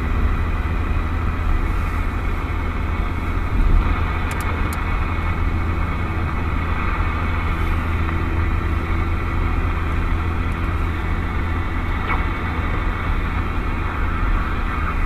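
A car engine hums steadily while driving.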